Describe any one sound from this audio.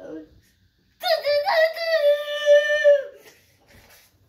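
A young boy sings a long drawn-out note.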